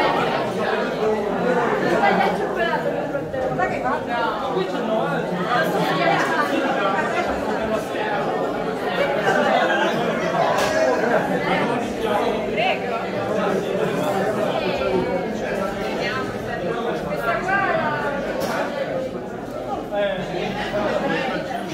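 Many adults chatter indoors.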